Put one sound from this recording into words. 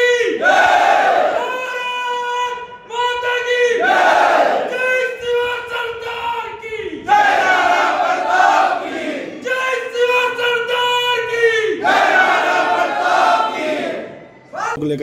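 A group of men chant slogans loudly in unison outdoors.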